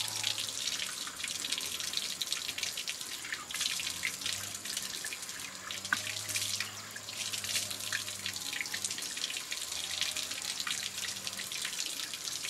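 A woman splashes water on her face.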